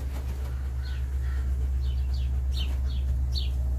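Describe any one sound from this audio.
A dog pants quickly and close by.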